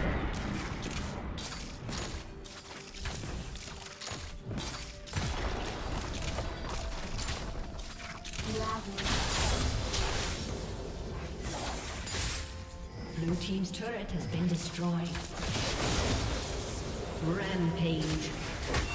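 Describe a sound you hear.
Video game spells and attacks crackle and crash in a busy battle.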